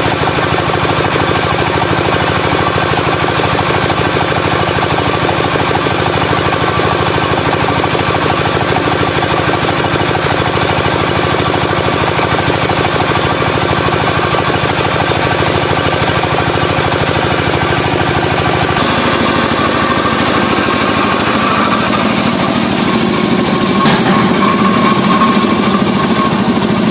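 A machine hums and rattles loudly as it runs.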